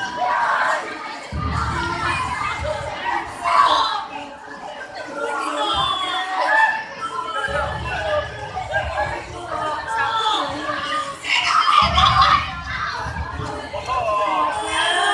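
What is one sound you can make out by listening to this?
Many children's voices chatter and call out nearby, outdoors.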